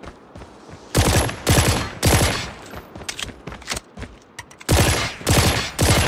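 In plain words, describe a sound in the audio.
A pistol fires loud, sharp shots in bursts.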